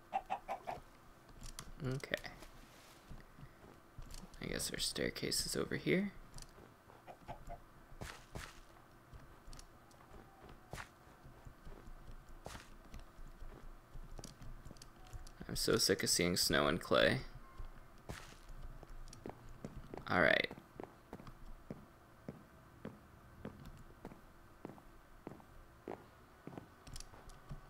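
Footsteps crunch over snow and thud on wooden boards.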